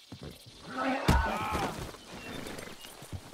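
A man thuds heavily onto the ground.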